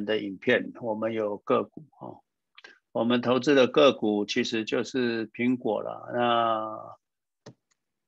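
A man talks with animation through a microphone, as on an online call.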